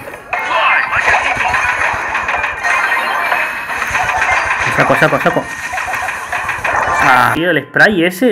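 Electronic blasts and zapping effects crackle rapidly.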